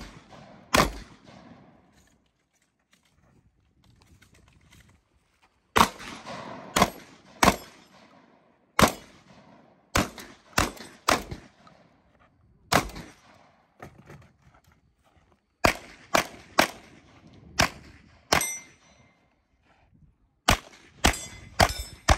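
Pistol shots crack sharply one after another outdoors, each echoing briefly.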